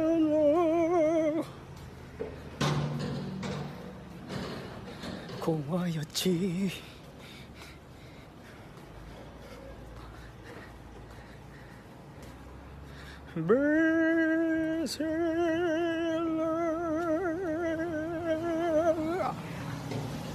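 A young man sings loudly with a wavering held note.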